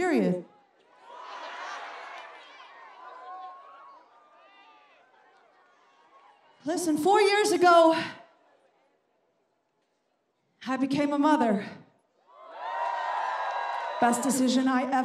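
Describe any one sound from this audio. A crowd cheers and applauds outdoors.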